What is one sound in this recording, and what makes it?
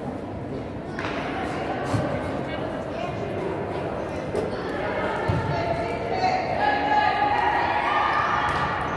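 Players' shoes squeak on a hard court in a large echoing hall.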